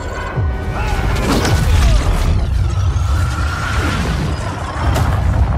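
Electricity crackles and roars loudly.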